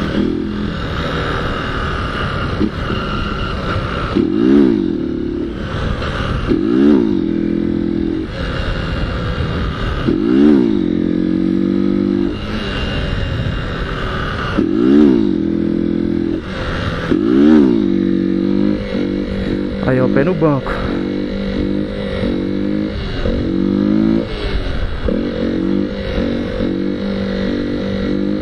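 A trail motorcycle engine revs up and down repeatedly while riding a wheelie.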